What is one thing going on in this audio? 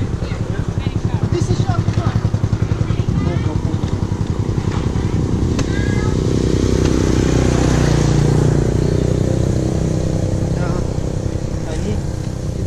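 Motorbikes drive past with a low engine hum.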